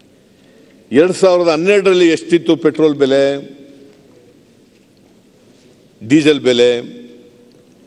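An elderly man speaks into a microphone in a calm, deliberate voice, with pauses.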